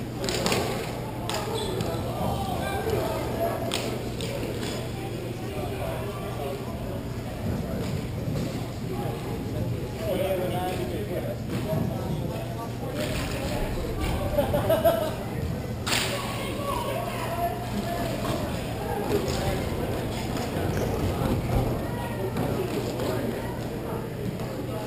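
Hockey sticks clack against a ball and the floor.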